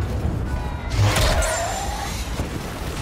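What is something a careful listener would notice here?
A lightsaber hums and swings.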